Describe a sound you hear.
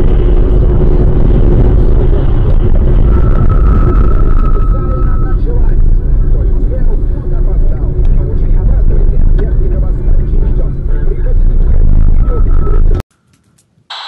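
A car engine hums and road noise rumbles steadily as the car drives.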